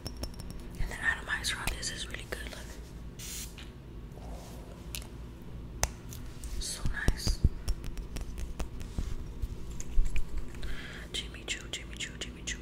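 Fingernails tap and click on a glass bottle close by.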